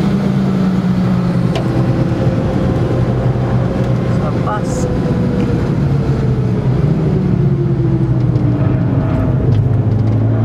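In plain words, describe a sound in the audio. A car engine hums steadily from inside the car, rising and falling in pitch.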